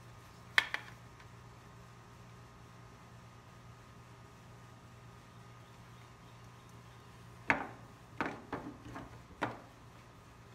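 Plastic casing parts click and clack as they are pulled apart and handled.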